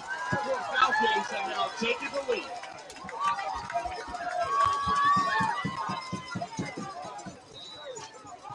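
A large outdoor crowd cheers and shouts loudly, then dies down.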